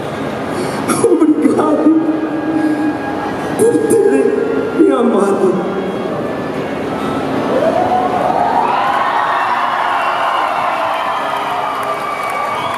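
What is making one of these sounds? A large crowd is heard in a big echoing hall.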